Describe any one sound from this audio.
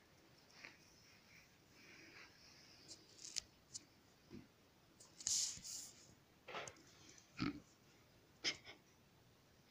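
Kittens scamper and scuffle on a hard floor with soft thumps and scrapes.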